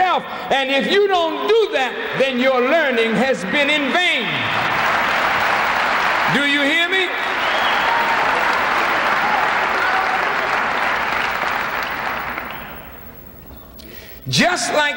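A middle-aged man speaks forcefully into a microphone in a large echoing hall.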